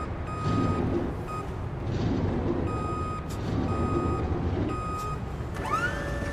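A warning beeper on a lift pulses repeatedly.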